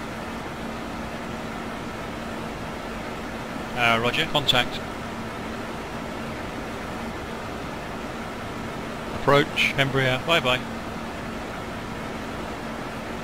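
A jet engine hums steadily in the background.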